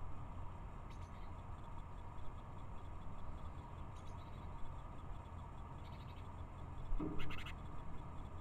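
Small birds chirp now and then, outdoors.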